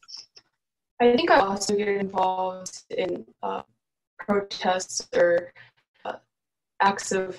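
Another young woman speaks steadily over an online call.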